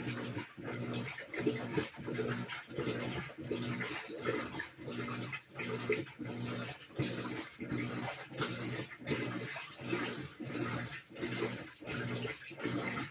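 A top-load washing machine agitates its load in rhythmic, churning strokes.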